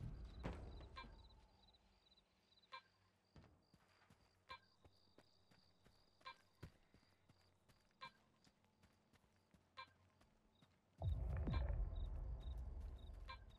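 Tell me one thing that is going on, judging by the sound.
A radiation detector beeps in short, evenly spaced chirps.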